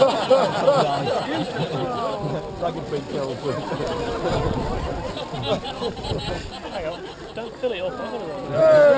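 Rain patters on umbrellas.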